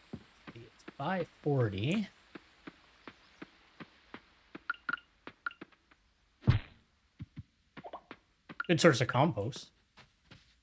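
A man speaks casually into a nearby microphone.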